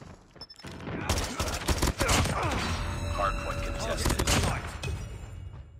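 Gunfire rattles in rapid bursts.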